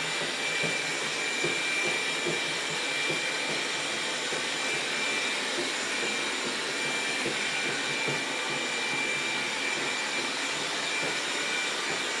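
A robot vacuum cleaner hums and whirs steadily.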